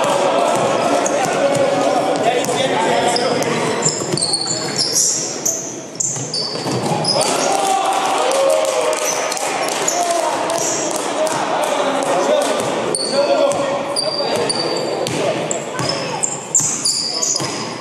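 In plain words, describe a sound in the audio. A basketball bounces on the floor as a player dribbles.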